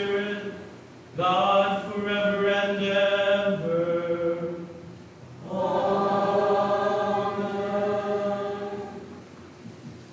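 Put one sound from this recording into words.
A man chants in a sustained, singing voice through a microphone in an echoing hall.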